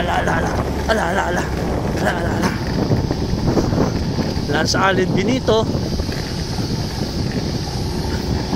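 Wind buffets loudly against a microphone outdoors.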